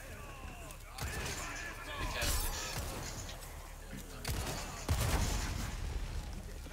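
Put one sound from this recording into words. Gunshots bang sharply several times.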